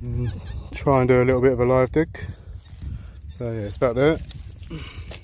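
A metal detector gives a loud warbling beep.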